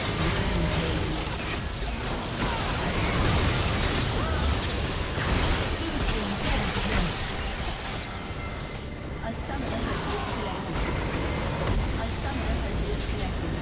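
Fantasy spell effects crackle, whoosh and boom in a busy battle.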